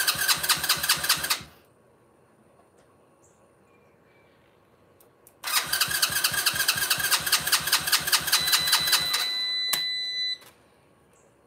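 A small engine's starter cranks rapidly in two bursts without the engine catching.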